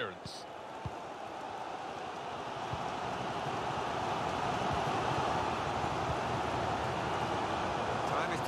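A large stadium crowd roars and chants steadily, slowly swelling.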